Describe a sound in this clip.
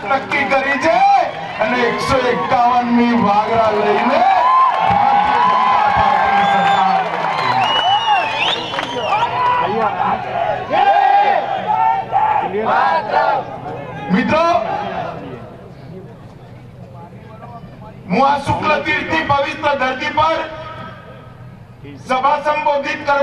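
A middle-aged man speaks forcefully into a microphone over loudspeakers, in a large open-air space.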